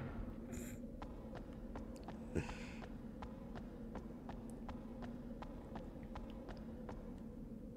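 Quick footsteps tap in an even rhythm.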